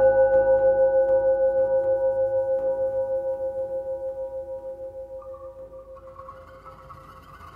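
A plucked zither note rings out and slowly fades in a large hall.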